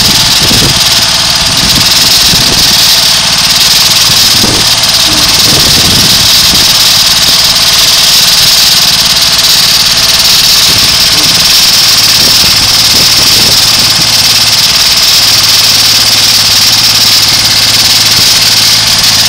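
A diesel ride-on trencher engine idles.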